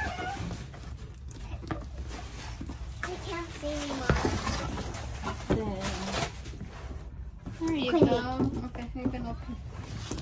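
A cardboard box rustles and scrapes as it is handled.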